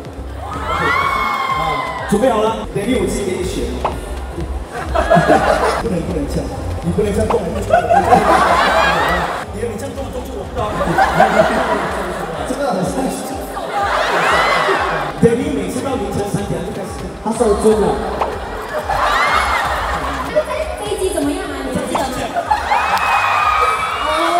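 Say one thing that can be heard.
Young men talk with animation through microphones over a loudspeaker, in a large echoing hall.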